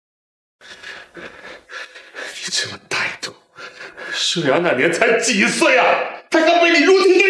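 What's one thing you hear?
A middle-aged man speaks angrily and loudly nearby.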